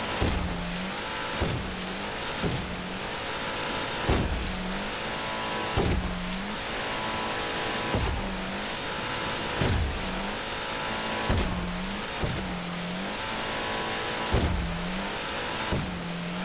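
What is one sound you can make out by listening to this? Water rushes and sprays past a speeding boat.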